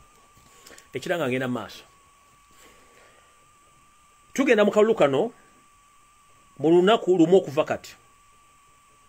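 A middle-aged man speaks with animation over an online call, in short bursts with pauses.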